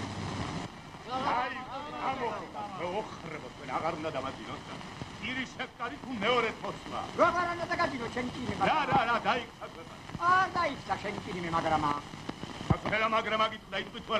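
A man speaks with animation, heard close by.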